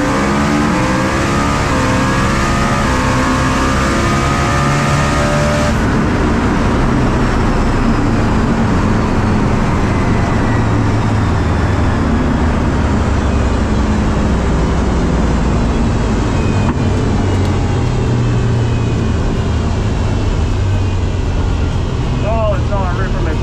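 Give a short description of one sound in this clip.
A race car engine roars loudly and revs up through the gears.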